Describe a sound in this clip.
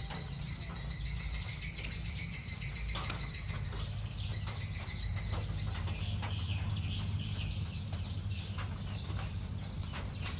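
Small chicks peep softly nearby.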